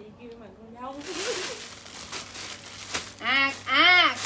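Plastic bags rustle and crinkle as clothes are handled.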